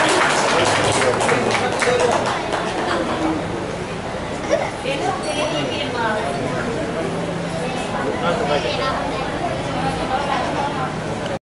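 Singers sing a devotional song through microphones.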